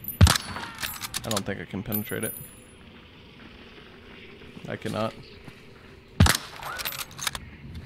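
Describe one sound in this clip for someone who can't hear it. A pistol is reloaded with metallic clicks.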